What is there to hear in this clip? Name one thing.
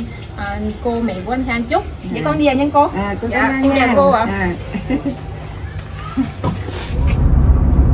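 An elderly woman talks and laughs close by.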